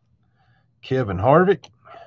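Trading cards slide and flick against each other.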